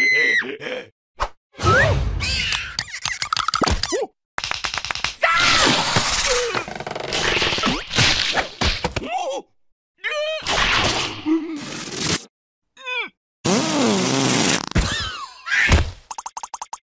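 A cartoon creature babbles and cries out in a squeaky voice.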